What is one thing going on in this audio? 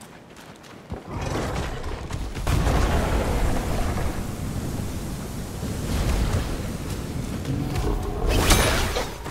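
Fire roars loudly.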